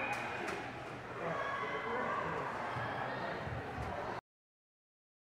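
Children shout and chatter in a large echoing hall.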